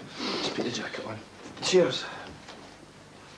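A man speaks loudly and agitatedly close by.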